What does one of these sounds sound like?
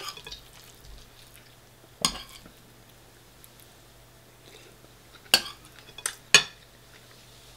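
A metal fork clinks and scrapes against a bowl.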